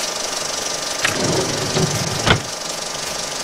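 A wooden drawer slides open with a scrape and a knock.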